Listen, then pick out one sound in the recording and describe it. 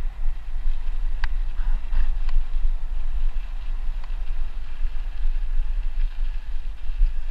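Wind rumbles steadily against a microphone outdoors.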